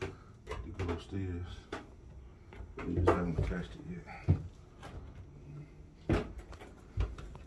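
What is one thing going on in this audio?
Footsteps thud on hollow wooden stairs.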